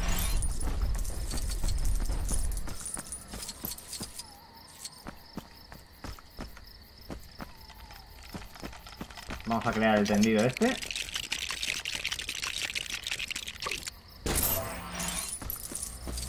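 Small coins jingle and clink as they are picked up.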